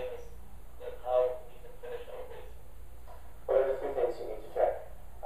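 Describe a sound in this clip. A man talks calmly through a loudspeaker in a room.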